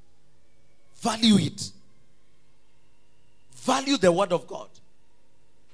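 A man preaches loudly through a microphone in short bursts.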